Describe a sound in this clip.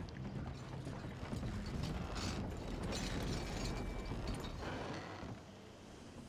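Wooden wagon wheels creak and rumble over boards.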